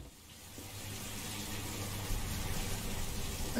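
A door swings shut with a dull thud.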